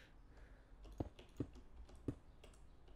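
Stone blocks break with short dull knocks.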